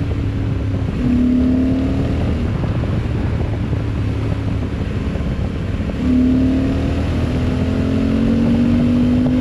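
A motorcycle engine revs up as it accelerates.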